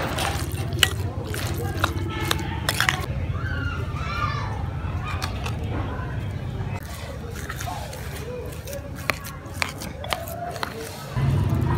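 A spoon scrapes and clinks against a bowl while stirring minced meat.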